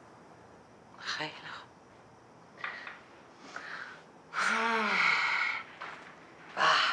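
A middle-aged woman talks, heard through a phone video call.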